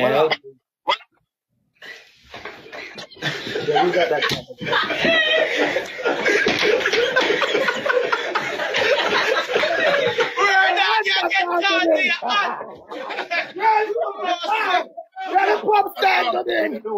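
Young men talk, shout and laugh loudly over an online call.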